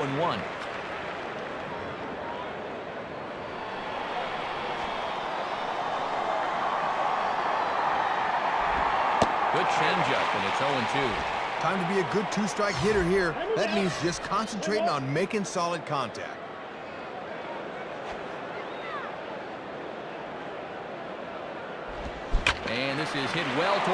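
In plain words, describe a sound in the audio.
A stadium crowd murmurs.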